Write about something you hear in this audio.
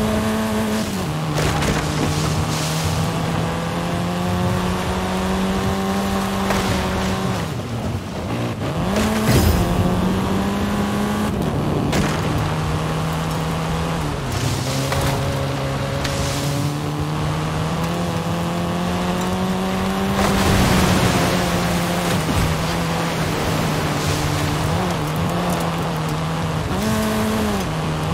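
A car's tyres rumble over rough ground.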